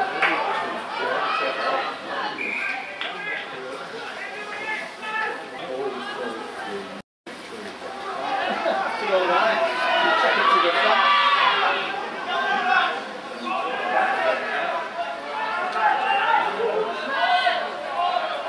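A crowd of spectators talks and calls out outdoors.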